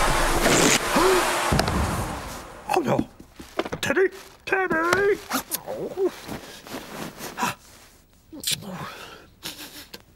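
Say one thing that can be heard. A man mumbles and grunts in a squeaky, comical voice.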